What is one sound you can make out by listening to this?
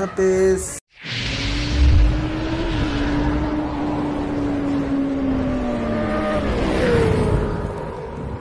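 A motorcycle engine revs loudly and roars past.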